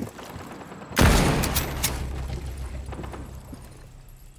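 A rifle shot booms and echoes away.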